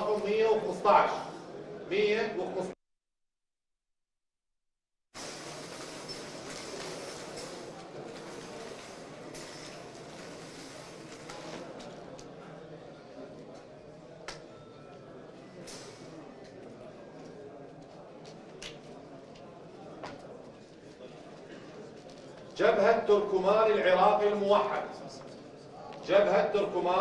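A man speaks clearly into a microphone, announcing.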